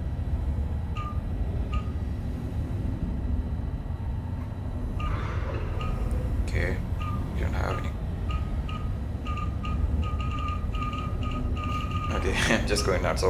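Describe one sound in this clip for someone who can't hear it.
Short electronic beeps sound from a control console.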